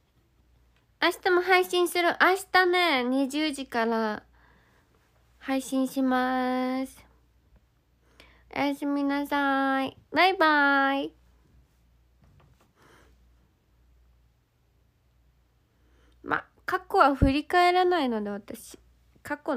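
A young woman speaks lightly and cheerfully, close to the microphone.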